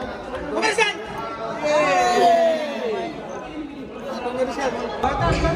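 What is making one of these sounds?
Young men and women talk and laugh nearby.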